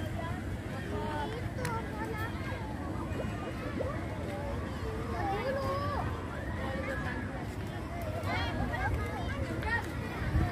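Children shout and call out nearby.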